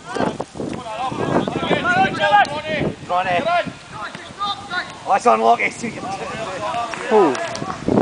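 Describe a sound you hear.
Young men shout to each other outdoors.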